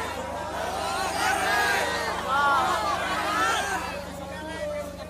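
Men in a crowd shout and cheer excitedly, close by.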